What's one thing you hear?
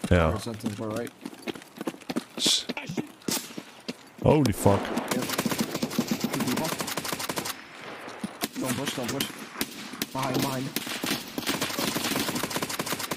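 Footsteps crunch quickly on gravel and grass.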